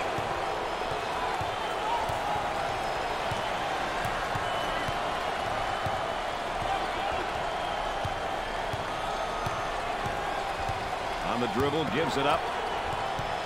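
A large crowd murmurs and cheers steadily in an echoing arena.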